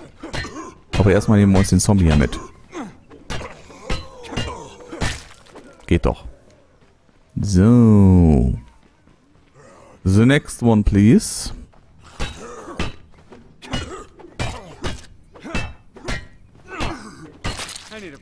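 A heavy weapon thuds repeatedly into a body.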